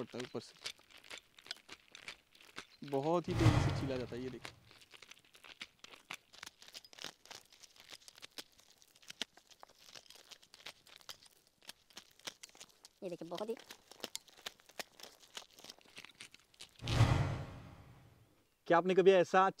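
Kernels crackle and patter as a spoon scrapes them off a corn cob.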